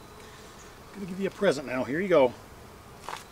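A man speaks calmly and briefly nearby, outdoors.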